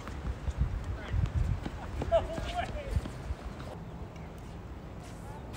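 Tennis shoes shuffle and scuff on a hard court.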